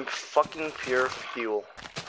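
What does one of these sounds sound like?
Leaves crunch as a block breaks.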